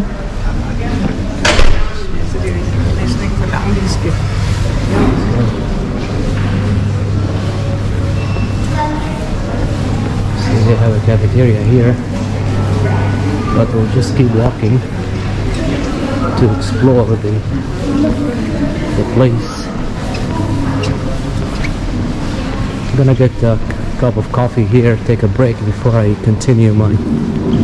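Men and women chat quietly in a large echoing hall.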